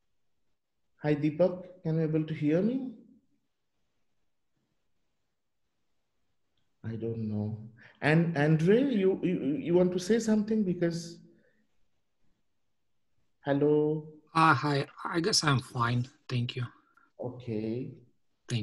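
A man speaks calmly and close to a microphone, in short bursts with pauses.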